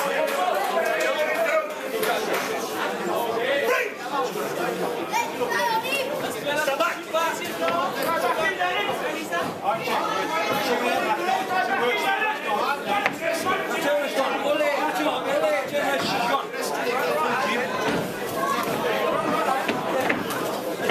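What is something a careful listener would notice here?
A crowd of men and women talk and shout loudly in a large echoing hall.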